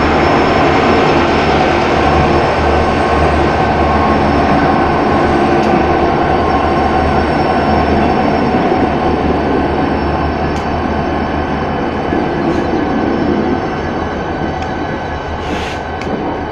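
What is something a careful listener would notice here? Heavy train wheels roll and clank along the rails.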